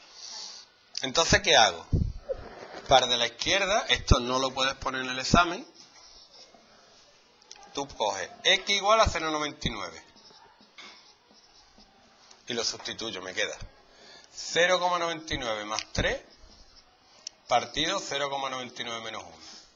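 A man explains calmly, close by.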